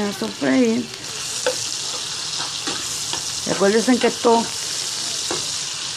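A spatula scrapes and stirs in a frying pan.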